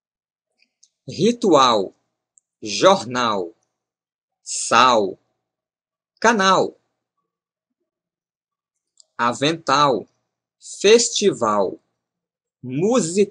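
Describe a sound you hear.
A young man speaks calmly and clearly into a close microphone, in short phrases with pauses.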